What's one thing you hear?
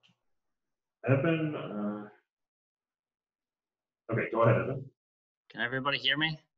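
A man speaks calmly, heard through a room microphone.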